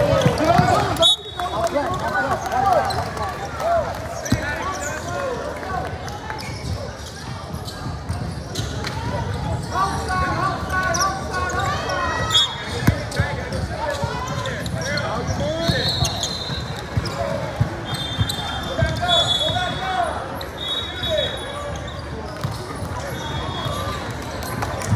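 Sneakers squeak sharply on the hardwood floor.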